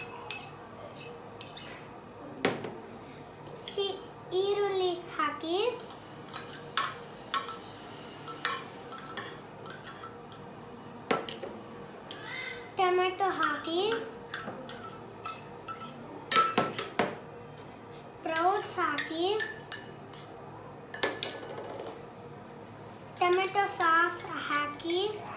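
A metal spoon clinks against steel bowls.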